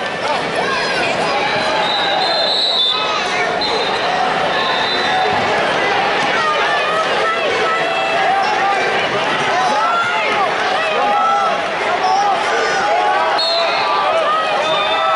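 A large crowd of people chatters and shouts in a big echoing hall.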